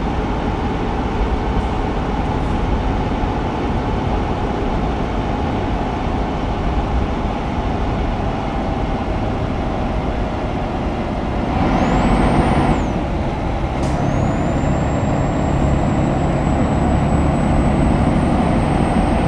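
Tyres roll on a road with a steady rumble.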